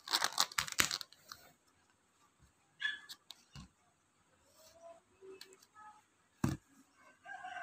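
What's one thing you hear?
A plastic tub's lid crackles and clicks as hands handle it.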